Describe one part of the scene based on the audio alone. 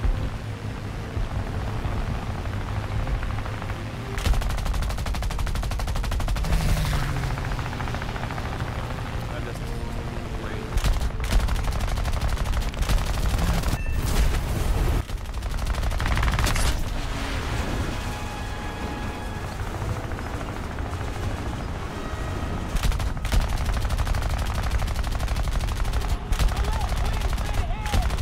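A propeller plane engine drones steadily.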